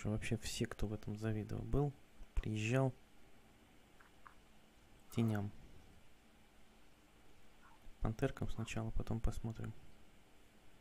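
A man speaks calmly over an online call, in short phrases with pauses.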